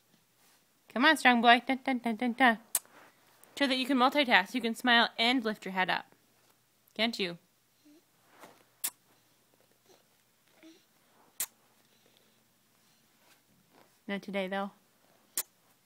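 A baby coos and babbles up close.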